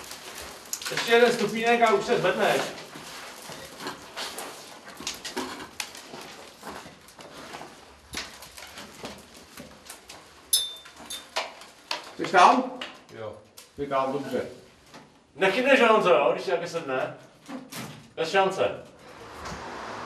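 A man speaks nearby in an echoing space.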